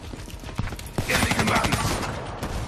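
Gunfire crackles in a video game.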